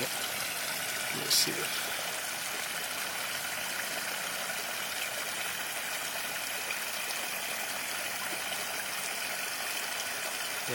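Water splashes from a pipe into a tank.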